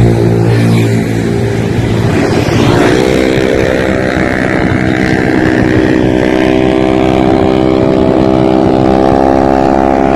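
A vehicle engine hums and rises in pitch as it speeds up.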